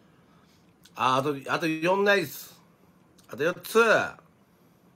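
A man speaks close by in a calm voice.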